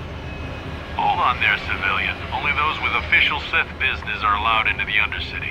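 A man with a stern, robotic voice speaks commandingly.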